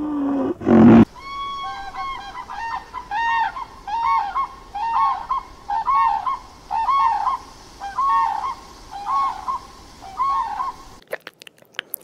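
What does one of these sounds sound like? A crane calls out repeatedly in loud, trumpeting cries.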